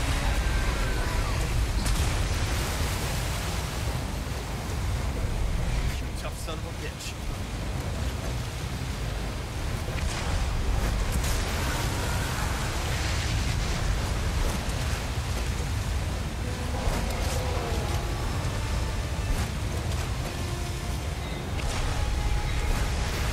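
Water churns and splashes loudly around a small boat.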